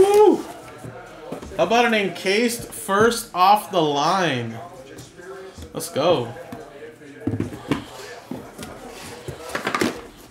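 Cardboard rustles as a box is handled.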